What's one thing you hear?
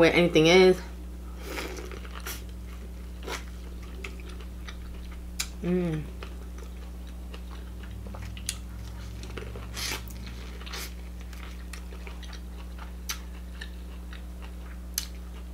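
A young woman bites and chews corn on the cob with wet, crunchy sounds.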